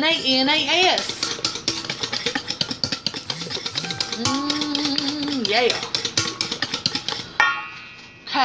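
A spoon scrapes and clinks against a metal bowl.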